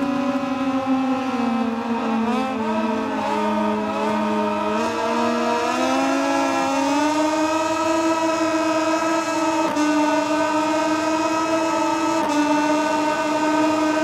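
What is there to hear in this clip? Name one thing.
A racing motorcycle engine screams loudly, dropping in pitch through a bend and then revving higher with sharp gear shifts.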